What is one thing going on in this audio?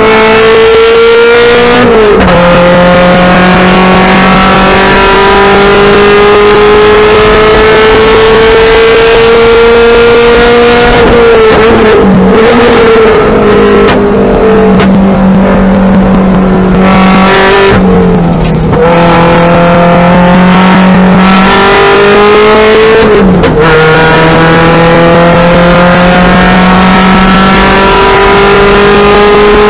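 A car engine roars loudly close by, its pitch climbing through each gear and dropping at each shift.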